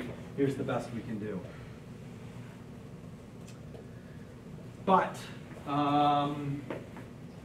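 A man speaks into a microphone in a room with a slight echo.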